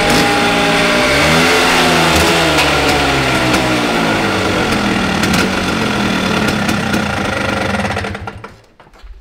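A scooter engine revs loudly, rising and falling in pitch.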